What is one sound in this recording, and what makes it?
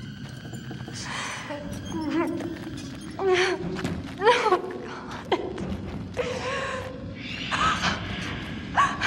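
A young woman breathes heavily and whimpers close by.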